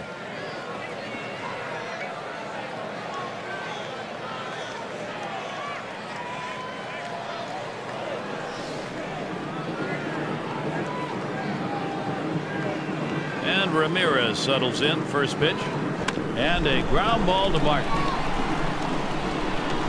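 A large crowd murmurs and cheers in a stadium.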